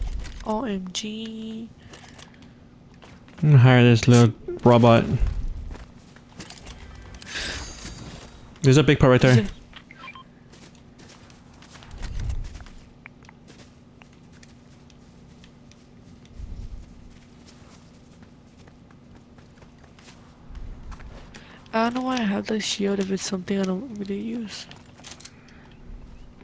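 Footsteps patter quickly over a roof and grass.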